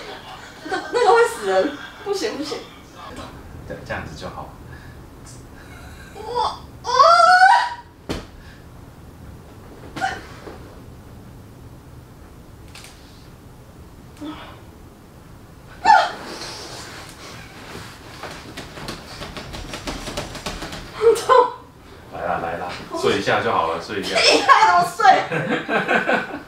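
A woman talks and laughs nearby.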